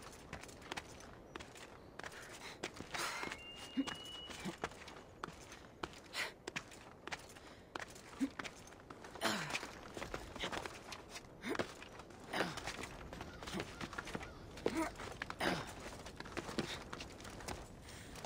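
Hands and feet scrape and thud on rock and stone while climbing.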